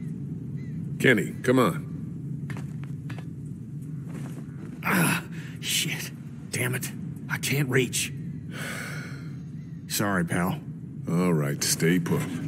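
A man speaks urgently, close by.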